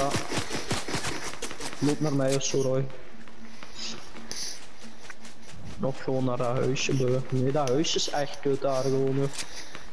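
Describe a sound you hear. Footsteps crunch quickly on snow.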